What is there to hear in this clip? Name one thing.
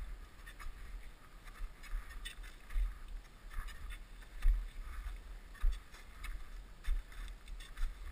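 Crampons crunch into hard snow with each step.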